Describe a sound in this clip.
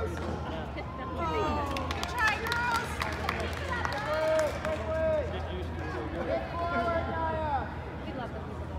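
Spectators cheer and shout nearby in a large echoing hall.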